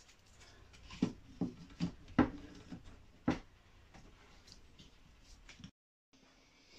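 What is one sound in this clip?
Wooden pieces knock against glass and wood.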